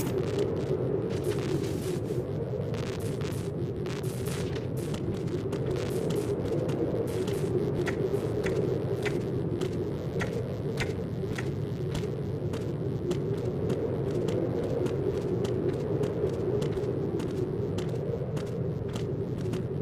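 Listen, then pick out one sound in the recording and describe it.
Footsteps clack on a metal floor.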